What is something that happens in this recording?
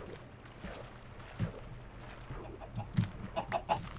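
A chicken clucks nearby.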